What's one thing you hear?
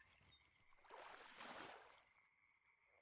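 A fish splashes out of the water.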